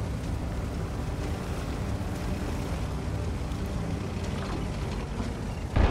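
Tank treads clank and rattle over the ground.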